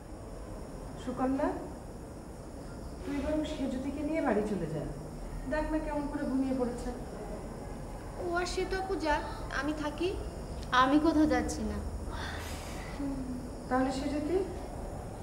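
A woman speaks in a low, weary voice nearby.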